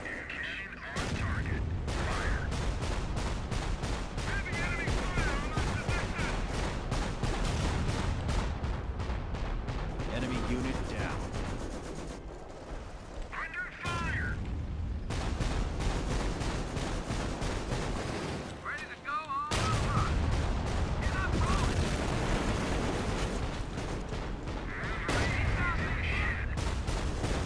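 Gunfire and explosions rumble from a battle game.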